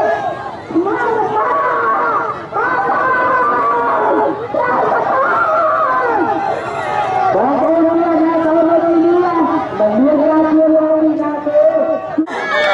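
A crowd of men and women sings slowly together outdoors.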